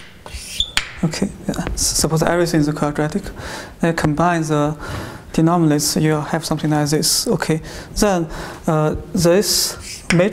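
A young man speaks calmly in a small echoing room.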